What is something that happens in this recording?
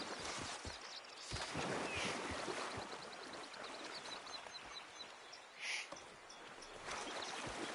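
Water of a stream flows and trickles steadily.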